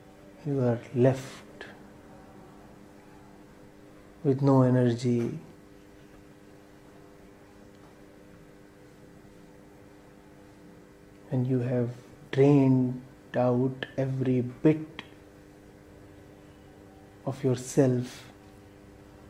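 A man speaks calmly and slowly into a nearby microphone, with long pauses.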